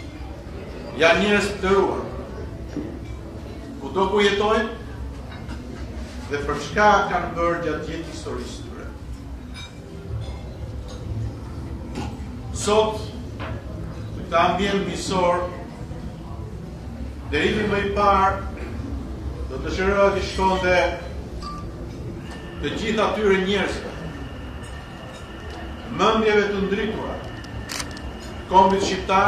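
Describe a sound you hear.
A middle-aged man speaks formally into a microphone, in short bursts with pauses.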